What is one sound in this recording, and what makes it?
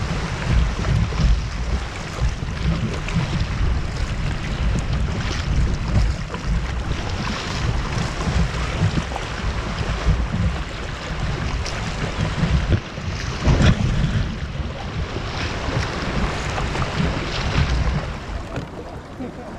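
Wind buffets a microphone outdoors on open water.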